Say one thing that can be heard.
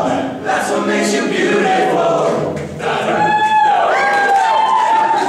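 A group of young men sing together in close harmony.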